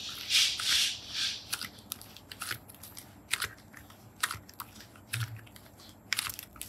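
Hands squish and squeeze soft slime, with sticky crackling and popping.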